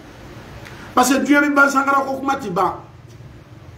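A man speaks loudly and with animation into a microphone.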